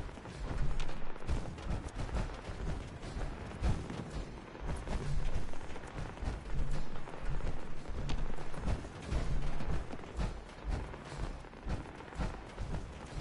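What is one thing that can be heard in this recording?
Heavy armored footsteps thud steadily across a floor.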